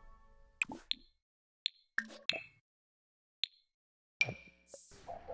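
Short interface clicks and chimes sound one after another.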